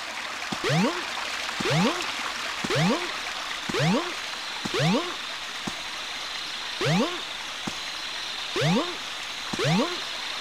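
A springy cartoon jump sound rises in pitch again and again, about once a second.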